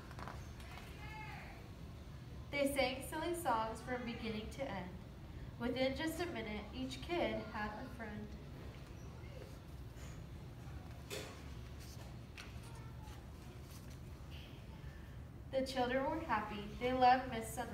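A young woman reads aloud calmly and expressively, close by.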